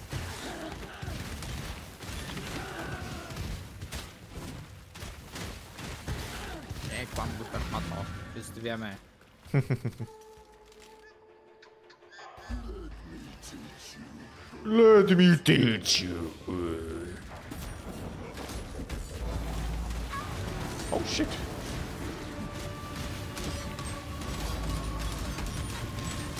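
Game sound effects of spells and combat crackle and whoosh.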